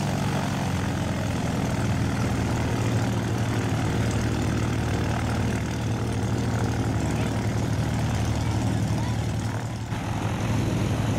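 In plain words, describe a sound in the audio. A small propeller plane's engine drones steadily nearby.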